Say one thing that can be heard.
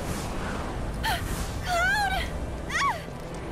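A young woman cries out a name in alarm.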